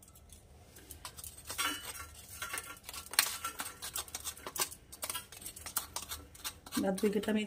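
A metal spoon scrapes and taps against a steel bowl.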